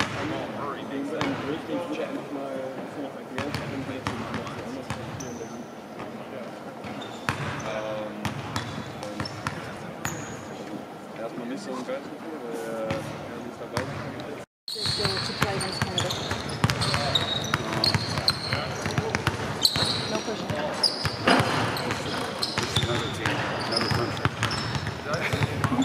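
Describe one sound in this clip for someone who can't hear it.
Basketballs bounce on a wooden court in a large echoing hall.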